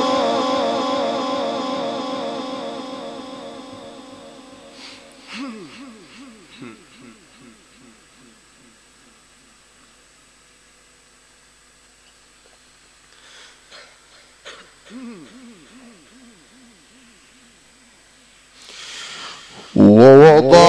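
A man chants in a long, wavering melody through a loudspeaker, echoing in a large space.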